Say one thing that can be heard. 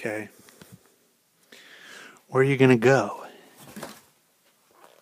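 A young man speaks close to the microphone in short bursts.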